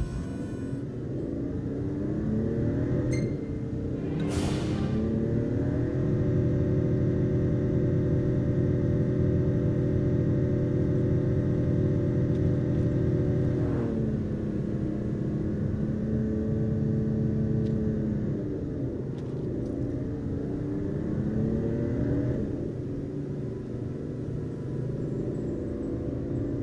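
A car engine hums steadily, its pitch rising and falling as it speeds up and slows down.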